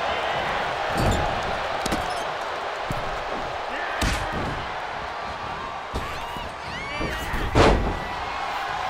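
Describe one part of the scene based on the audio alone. Heavy thuds of bodies hitting the mat boom now and then.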